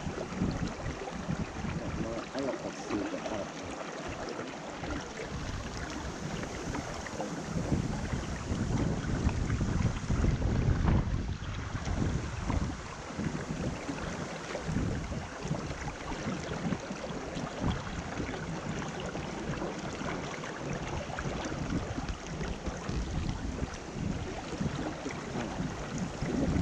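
A shallow stream rushes and burbles steadily close by.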